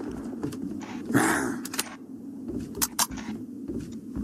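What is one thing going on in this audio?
A shotgun is reloaded with clicking and clacking.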